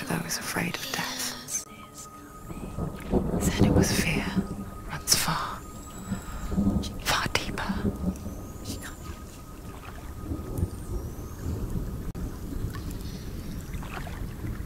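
A wooden paddle splashes and swishes through water.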